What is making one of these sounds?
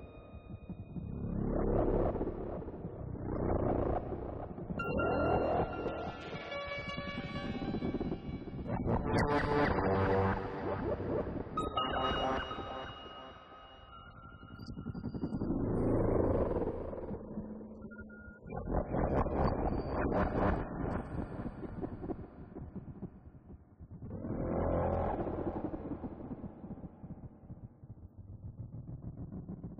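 A modular synthesizer plays swelling, shifting electronic tones.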